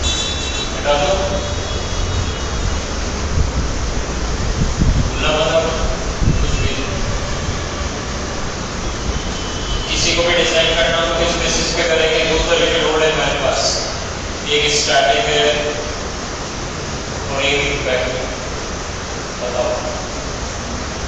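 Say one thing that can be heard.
A young man speaks calmly through a headset microphone.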